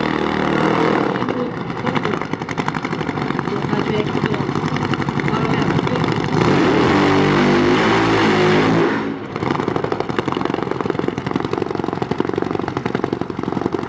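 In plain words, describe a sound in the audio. A drag bike engine idles with a loud, rapid rattling burble close by.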